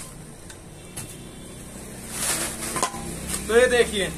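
Plastic sacks rustle as clothes are handled.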